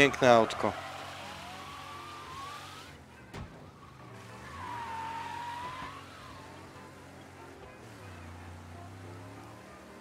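A car engine rumbles and revs.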